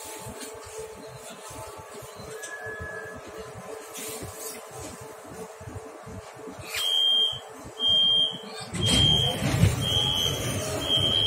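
A metro train rumbles steadily along the track.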